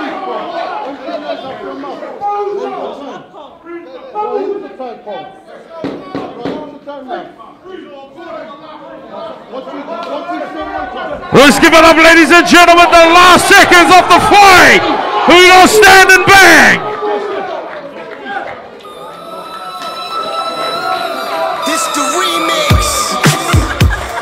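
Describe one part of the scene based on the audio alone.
A crowd chatters and cheers in the background.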